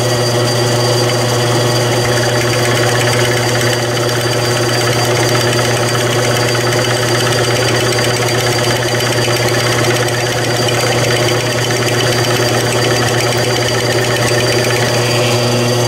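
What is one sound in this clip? A milling cutter grinds and screeches into metal.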